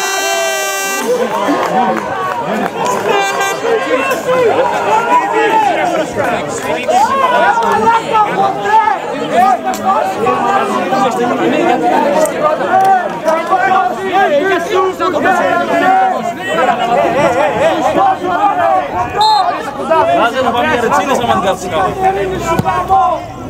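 Men shout to each other outdoors on an open field.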